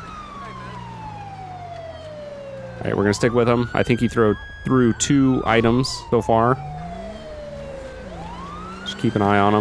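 A siren wails, slowly falling and rising in pitch.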